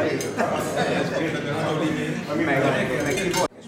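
An elderly man laughs.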